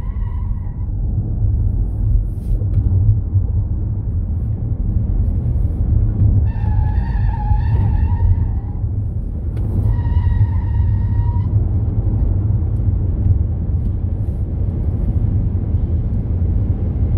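A car engine roars loudly and steadily at speed.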